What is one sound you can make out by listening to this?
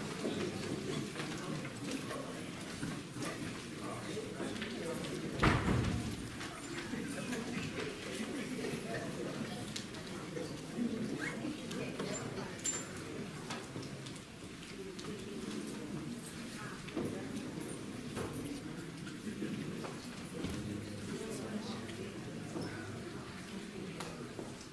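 Many men and women chat and murmur throughout a large, echoing hall.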